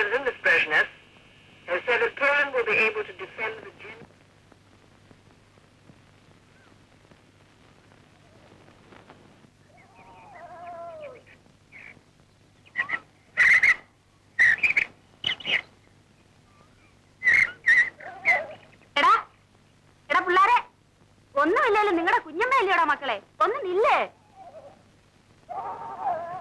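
A young woman sings.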